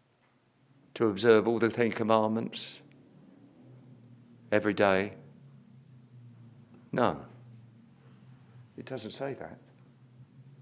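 An elderly man speaks slowly into a microphone, pausing between phrases.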